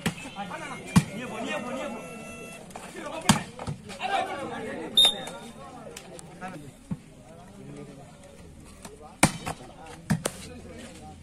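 A volleyball is slapped sharply by hand.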